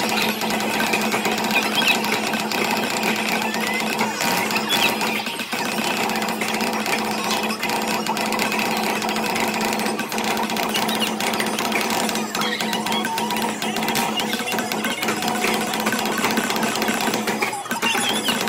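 Loud game music plays from an arcade machine's speakers.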